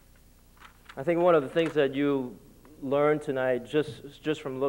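A man speaks into a microphone, calmly addressing a hall.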